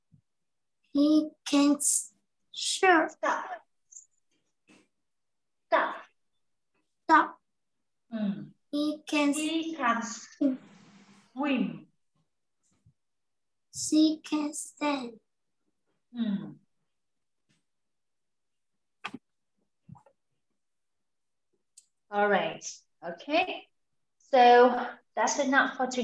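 A young woman speaks calmly and clearly over an online call, in short phrases with pauses.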